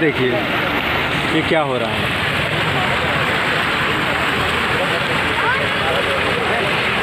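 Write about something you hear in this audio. A fountain splashes and gushes steadily into a pool.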